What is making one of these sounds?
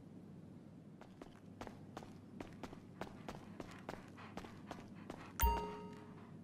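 Footsteps run quickly across a hard floor.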